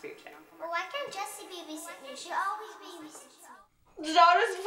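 A young girl speaks close by.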